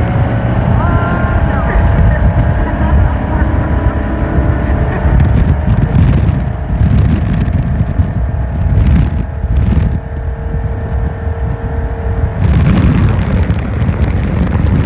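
Wind buffets loudly past the boat.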